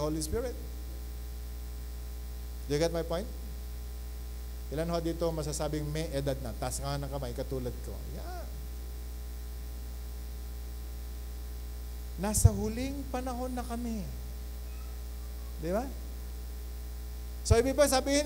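A middle-aged man preaches with animation into a microphone, pausing between phrases.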